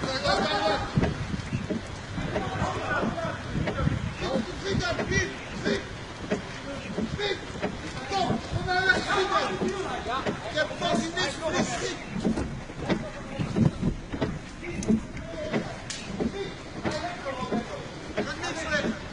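Men's voices carry outdoors in a street.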